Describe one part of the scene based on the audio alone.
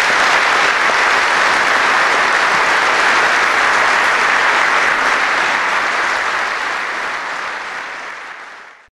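An audience applauds in a large echoing hall, and the applause slowly fades.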